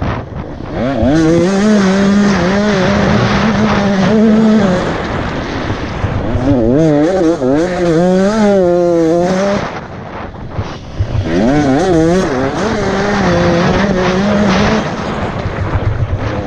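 A motocross bike engine revs hard and changes pitch close by.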